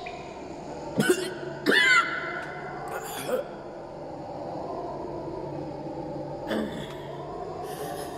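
A man chews, gags and pants close by.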